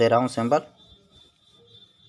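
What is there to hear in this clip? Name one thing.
A finger presses a plastic button with a soft click.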